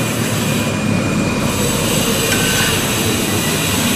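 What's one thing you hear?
A tram approaches along the tracks.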